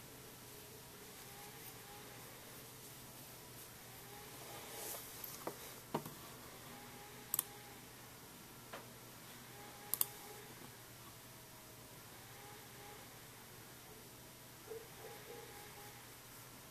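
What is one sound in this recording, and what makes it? A crochet hook softly rustles and scratches through yarn close by.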